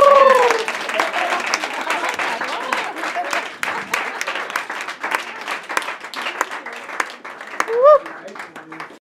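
Voices in the crowd whoop and cheer loudly.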